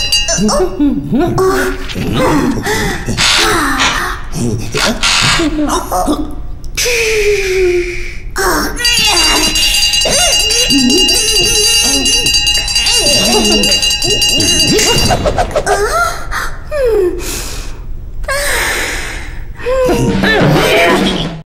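Cartoon characters talk with animated, squeaky voices.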